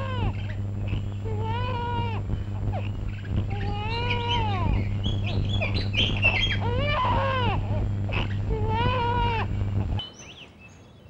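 A woman sings a melodic song.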